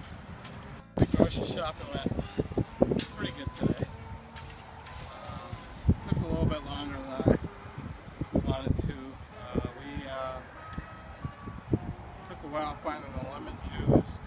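A middle-aged man talks calmly close by, outdoors.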